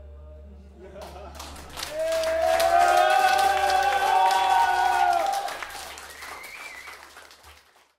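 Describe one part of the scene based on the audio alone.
Cymbals crash and shimmer on a drum kit.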